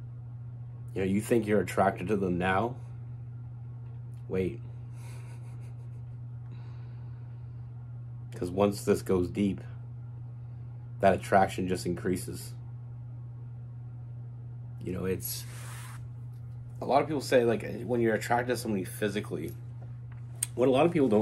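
A young man talks calmly into a nearby microphone, in short bursts with pauses.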